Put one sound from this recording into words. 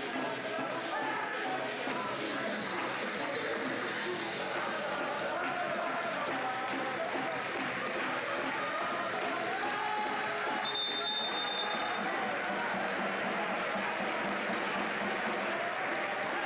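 A crowd of spectators claps and cheers in an echoing hall.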